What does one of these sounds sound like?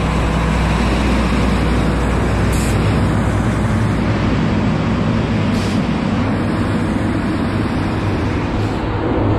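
A diesel semi-truck engine rumbles close by.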